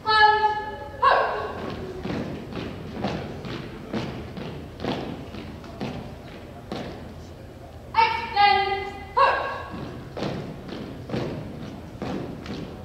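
Boots stamp on a wooden floor in a steady marching rhythm.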